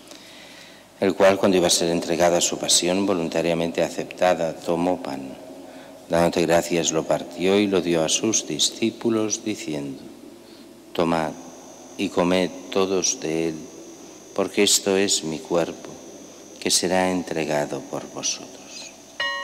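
An elderly man speaks calmly into a microphone, echoing in a large hall.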